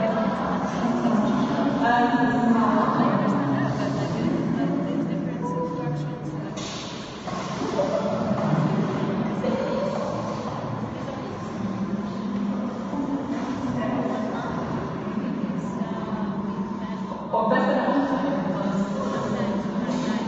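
A young woman talks with animation through a microphone in an echoing room.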